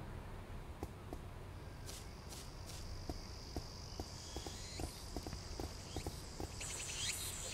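Light footsteps patter on a paved path.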